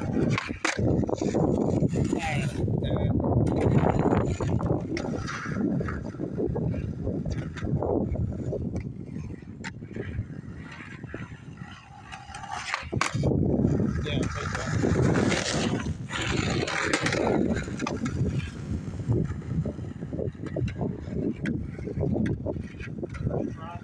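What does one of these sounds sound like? Skateboard wheels roll and rumble over rough pavement.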